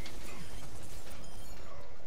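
An explosion bursts in a video game.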